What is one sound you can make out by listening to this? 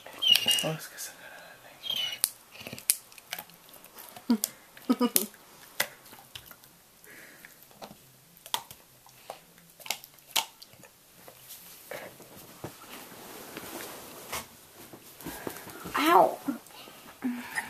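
A dog whines in short high cries.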